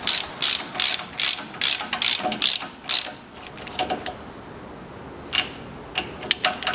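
A wrench ratchets in quick, regular bursts against metal.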